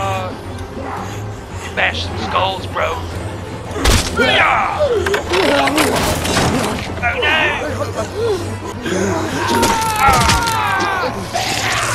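A young man groans and cries out in struggle.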